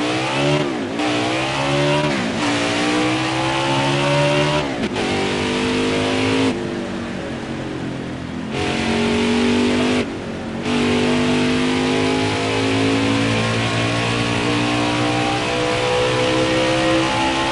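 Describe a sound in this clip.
A race car engine roars at high revs, dropping briefly with each gear change.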